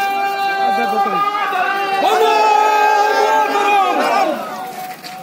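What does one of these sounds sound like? A man shouts a slogan with his arm raised.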